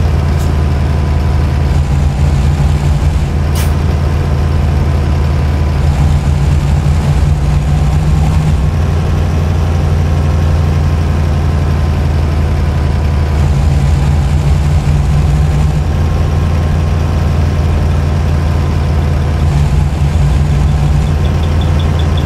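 A truck engine drones steadily, its pitch rising and falling as it shifts gears.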